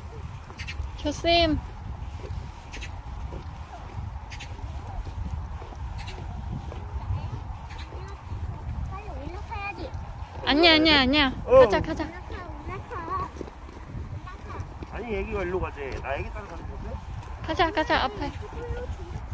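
A young child calls out in a high voice.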